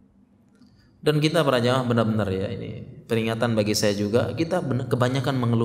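A man recites in a melodic chanting voice into a microphone, with a slight echo.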